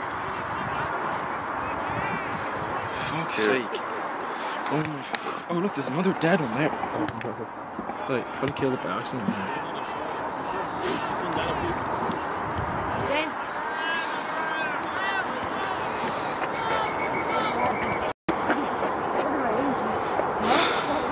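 Men and boys shout and call out across an open field.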